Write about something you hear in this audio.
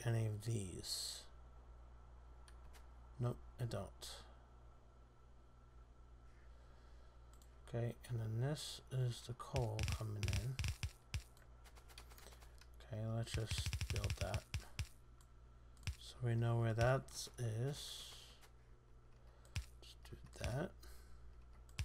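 A man commentates calmly through a headset microphone.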